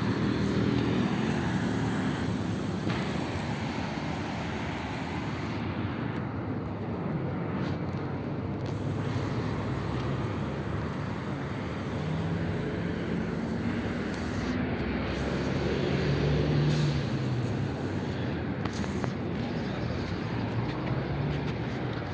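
Traffic hums and rumbles steadily along a busy street outdoors.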